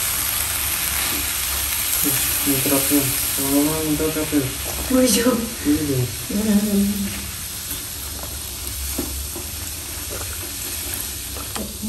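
Milk pours from a carton into a hot frying pan.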